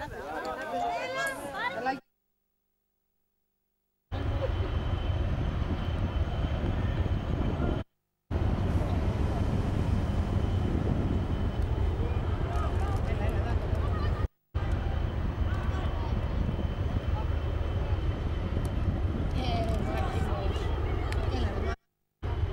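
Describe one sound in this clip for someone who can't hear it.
Young boys shout to each other across an open field, far off.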